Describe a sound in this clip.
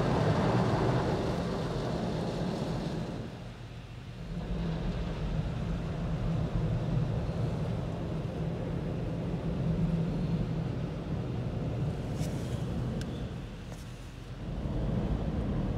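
Car wash machinery rumbles and whirs steadily nearby.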